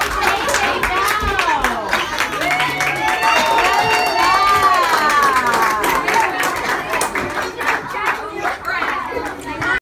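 Adults clap their hands in a steady rhythm.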